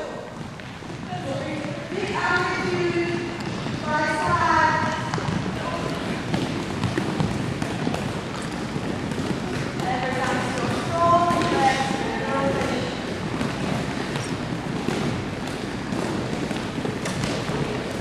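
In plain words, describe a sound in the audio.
A group of young women chatter and shout.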